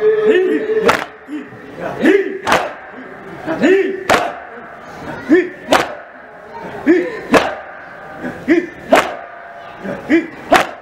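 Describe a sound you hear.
A young man recites in short, loud cries through a microphone.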